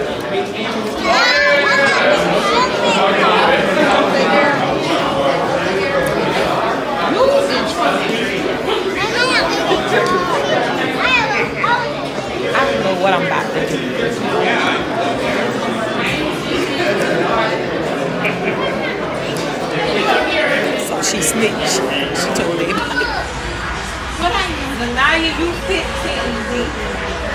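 Children and adults chatter together in a busy echoing hall.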